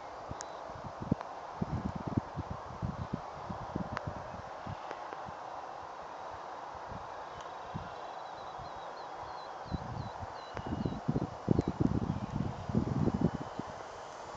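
Wind buffets the microphone in gusts outdoors.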